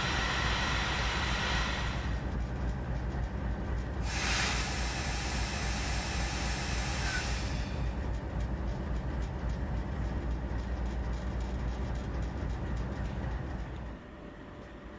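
A diesel locomotive engine idles with a low, steady rumble.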